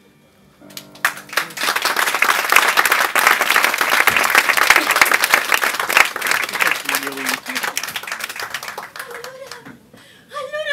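An audience applauds loudly and cheers.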